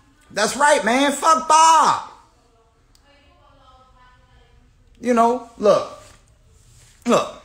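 A young man speaks close to the microphone with animation.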